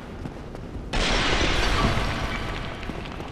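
A clay pot shatters loudly.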